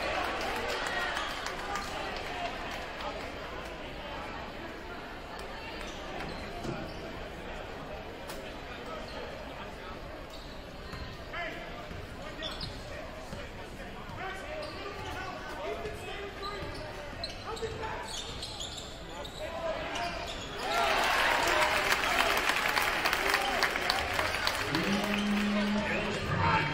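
A large indoor crowd murmurs and chatters in an echoing gym.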